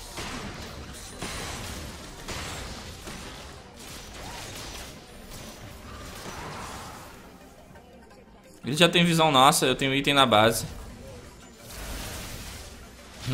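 Magic spell effects whoosh and crackle in a fight.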